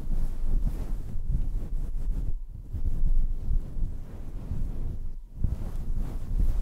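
A young woman whispers softly into a microphone.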